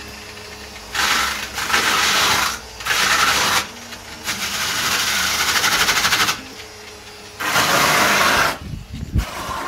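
A spray gun hisses loudly in bursts.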